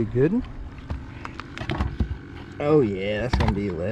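A fish flops and slaps against a boat's deck.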